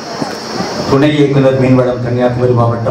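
An elderly man speaks through a microphone.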